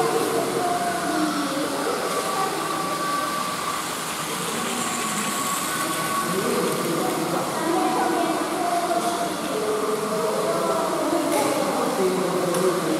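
Children and adults chatter and call out in a large echoing hall.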